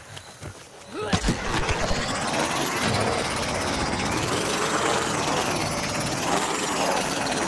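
A small flying drone's jet engines roar steadily.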